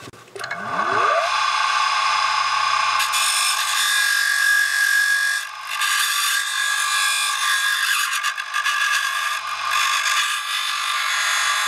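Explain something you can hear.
A small grinding machine whirs steadily while grinding metal.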